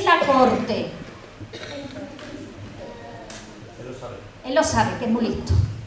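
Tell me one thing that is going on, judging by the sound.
A middle-aged woman speaks expressively into a microphone.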